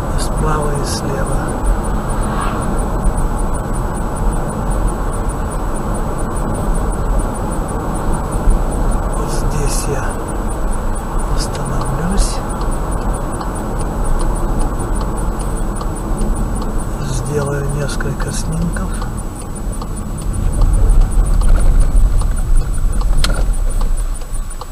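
A car drives steadily along a highway, its tyres humming on the road.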